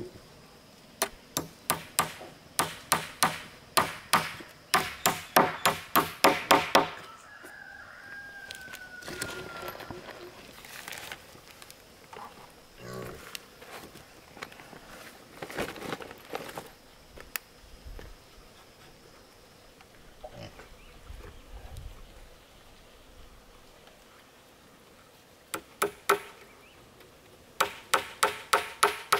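A hammer taps nails rapidly into wood.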